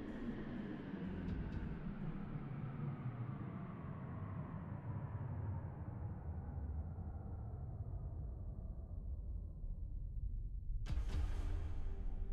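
Low, rumbling electronic music drones steadily.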